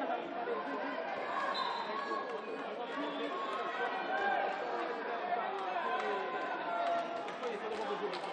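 Sneakers squeak sharply on a hard court floor.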